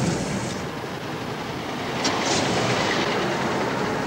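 A car pulls away from the curb.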